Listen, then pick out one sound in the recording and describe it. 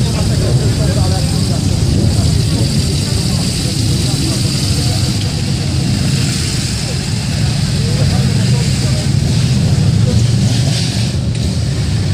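Motorcycles ride slowly past with engines revving.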